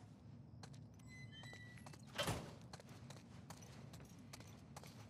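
Footsteps tread softly on a hard floor.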